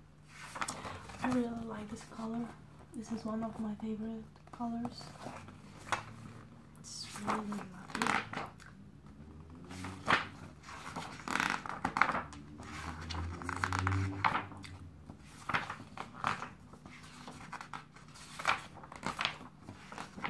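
Glossy magazine pages rustle and flip as they are turned.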